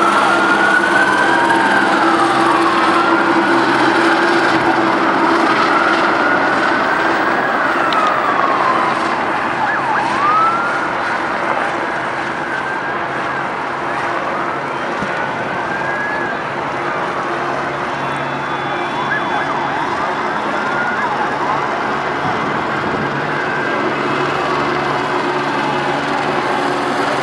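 A crowd murmurs and shouts outdoors.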